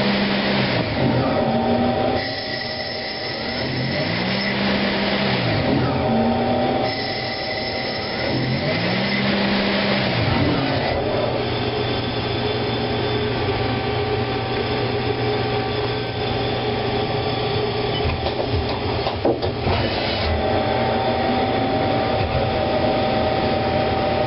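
A machine hums steadily.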